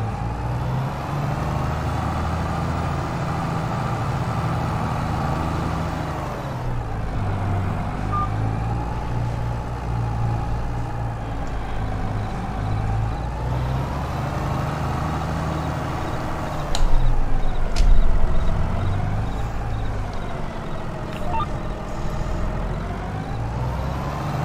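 A tractor engine drones steadily, rising and falling in pitch.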